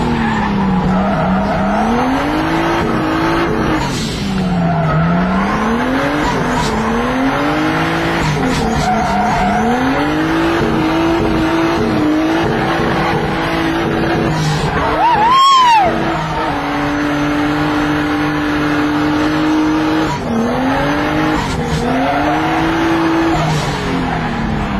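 A car engine roars loudly from inside the cabin, revving up and dropping again with each gear change.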